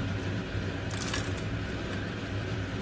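Vegetables pour into a pan with a soft patter.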